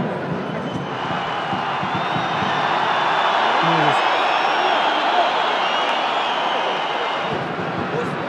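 A large stadium crowd roars and whistles loudly, then dies down.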